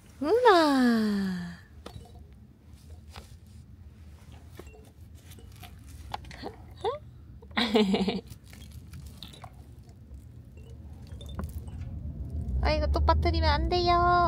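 A soft toy crinkles and rustles as a baby handles it.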